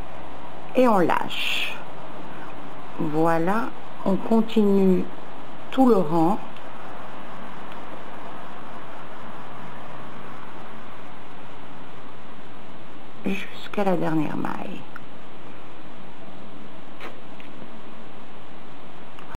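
Wooden knitting needles click and tap softly together.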